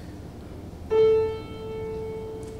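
A piano plays a single ringing note.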